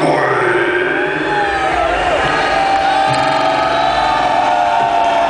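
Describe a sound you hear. Electric guitars play loudly through amplifiers, heard live in a large space.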